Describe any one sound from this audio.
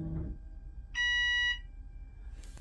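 An electronic chime beeps briefly.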